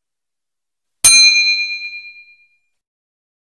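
A small bell dings and rings out.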